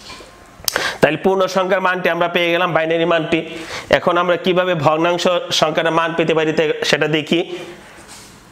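A man speaks clearly and steadily close by, explaining.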